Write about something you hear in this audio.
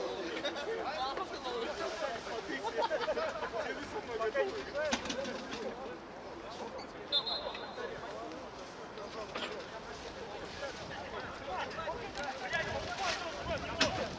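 Footsteps crunch on snow as a group jogs.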